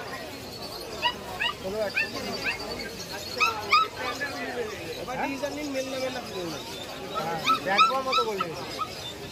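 A puppy yelps and whimpers in short, high cries.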